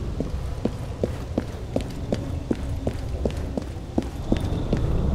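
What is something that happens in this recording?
Footsteps tap quickly up stone stairs.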